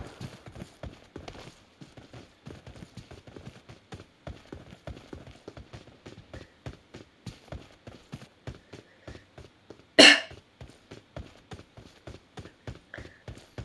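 Quick footsteps thud on dirt ground in a game.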